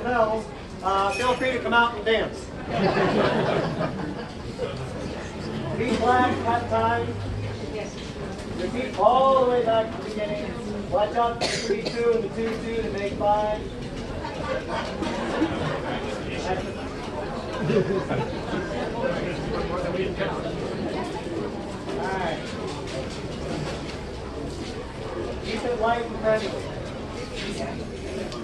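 People in a crowd chatter nearby.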